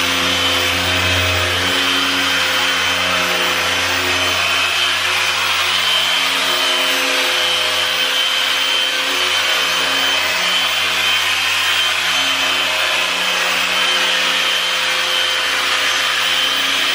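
A power polisher whirs steadily.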